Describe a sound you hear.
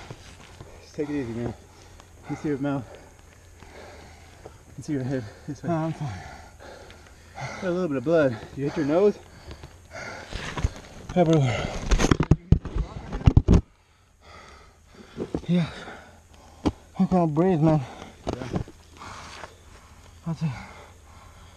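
A man talks close by in short, breathless bursts.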